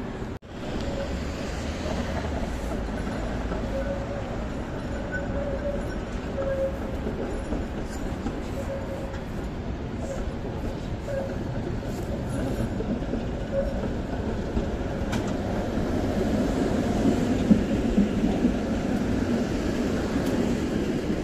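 Outdoor street noise hums steadily with light wind.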